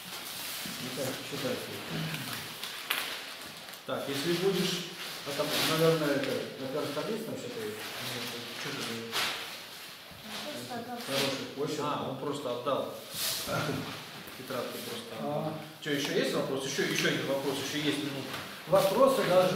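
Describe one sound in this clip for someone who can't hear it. Paper pages rustle.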